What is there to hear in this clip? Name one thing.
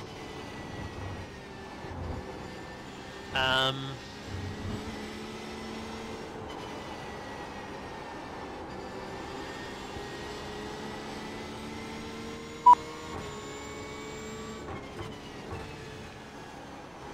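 A racing car engine drones steadily, its pitch rising and falling with the gears.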